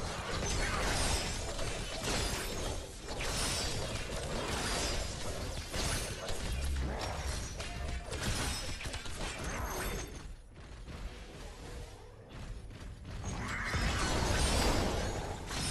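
Electric zaps crackle during a fight.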